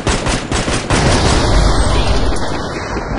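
An explosion booms and rumbles.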